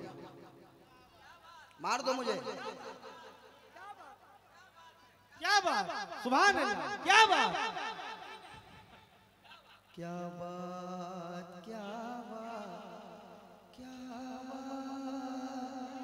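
A man sings loudly through a microphone and loudspeakers, with long held notes.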